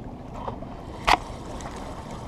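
A fishing reel's bail snaps shut with a sharp click.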